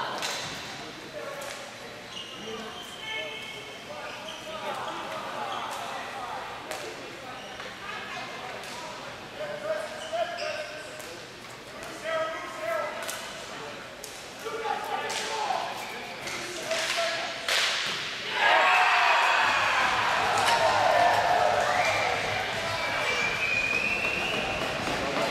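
Sticks clack and balls knock on a hard floor in a large echoing hall.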